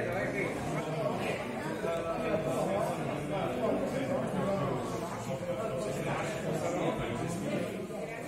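A crowd of people chatter in a large room.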